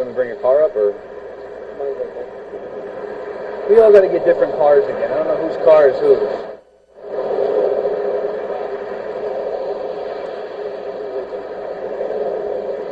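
Traffic hums steadily nearby.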